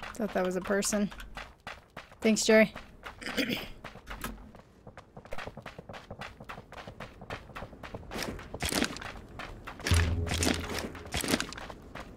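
Footsteps crunch quickly over grass and dirt.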